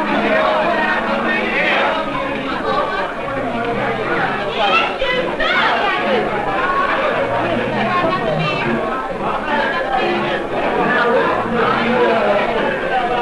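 A crowd of men and women talk and shout loudly all around, close by.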